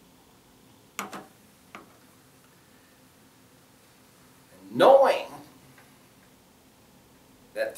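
A middle-aged man speaks slowly and deliberately, with long pauses.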